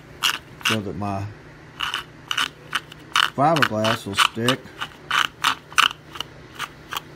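A blade scrapes in short, quick strokes across a rough surface.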